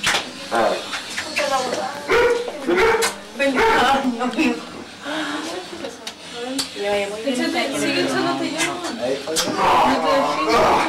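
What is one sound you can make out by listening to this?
Several adults talk and laugh together close by.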